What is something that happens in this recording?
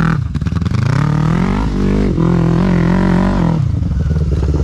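A quad bike engine revs loudly as the bike rides over rough ground.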